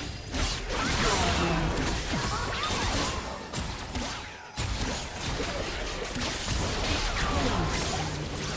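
Spell effects whoosh and crackle in a game battle.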